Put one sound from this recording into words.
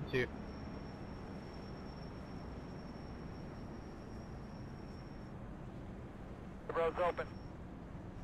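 A young man speaks briefly and calmly into a microphone.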